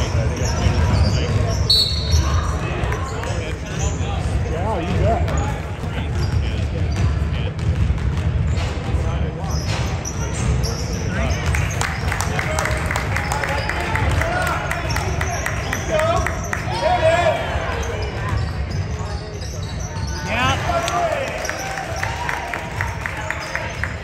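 Young players call out to each other across the gym.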